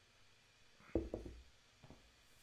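A mug knocks down onto a table.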